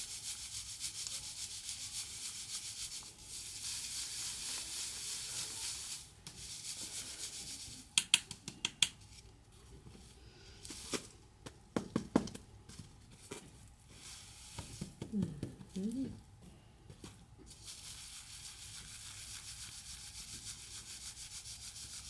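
Grain rustles and hisses as it is shaken in a basket sieve.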